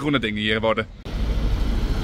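A bus engine idles nearby.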